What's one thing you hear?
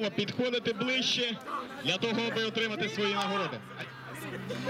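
A man speaks through a microphone over a loudspeaker outdoors.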